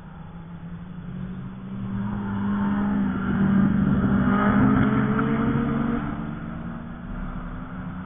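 A car engine roars loudly as the car speeds past and fades away.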